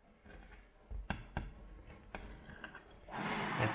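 A knife taps and scrapes against a plate.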